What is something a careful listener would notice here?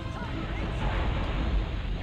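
Sparkling blasts crackle and burst loudly.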